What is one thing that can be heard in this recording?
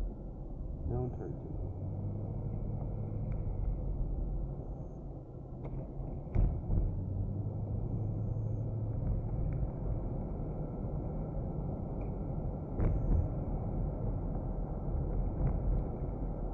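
Small bumps in the road thud through a car now and then.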